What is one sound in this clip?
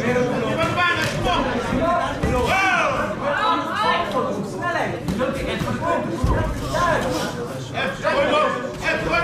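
Gloved punches thud against a body.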